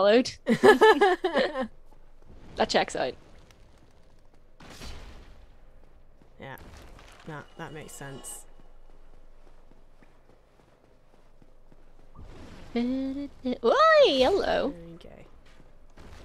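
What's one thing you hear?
A young woman talks and laughs with animation close to a microphone.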